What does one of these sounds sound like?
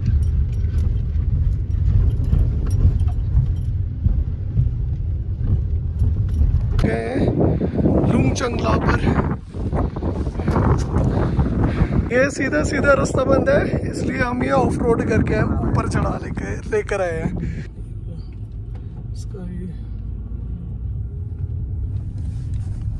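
A car engine hums low and steady from inside the car.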